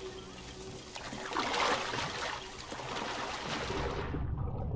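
Water splashes loudly as a body plunges into a pond.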